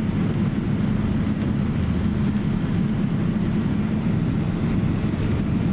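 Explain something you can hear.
Rain patters on an airliner window.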